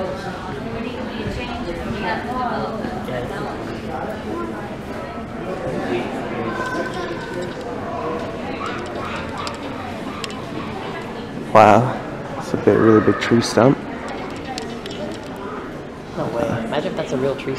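Many people talk and murmur in a large echoing hall.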